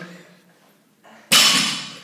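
Heavy barbell plates thud and clank against the floor.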